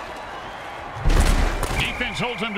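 Armoured players collide with a heavy thud.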